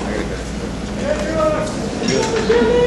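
A man strums an acoustic guitar in a large echoing hall.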